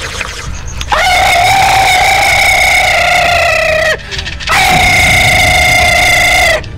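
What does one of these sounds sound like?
A young man cries out in a long, drawn-out wail.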